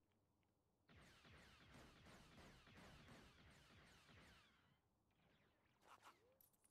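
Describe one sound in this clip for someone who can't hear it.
Blasters fire in rapid bursts.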